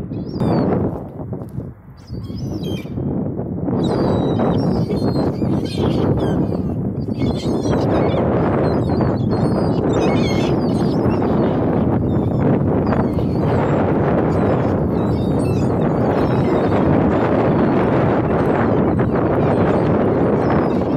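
Wind rumbles and blows outdoors.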